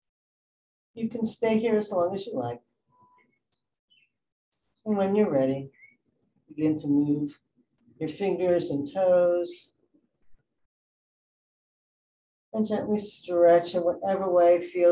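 A woman speaks calmly and slowly through a microphone, with long pauses.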